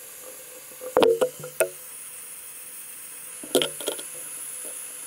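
Metal tongs clink against a small metal crucible.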